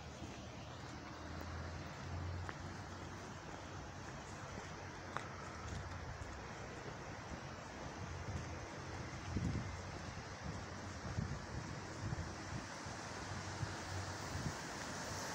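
Steady rain patters on a wet street outdoors.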